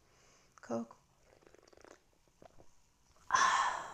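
A woman sips and gulps a drink.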